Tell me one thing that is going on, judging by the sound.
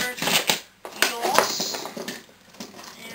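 A small toy motor whirs as a toy robot moves.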